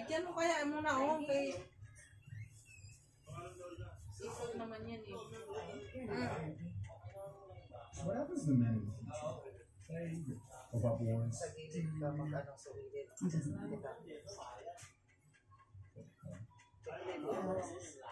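A middle-aged woman talks casually close by.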